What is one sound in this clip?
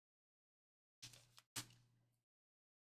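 A plastic card sleeve crinkles and taps.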